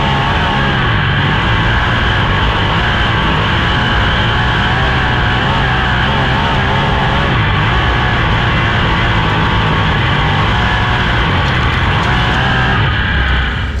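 A race car engine roars loudly at high revs.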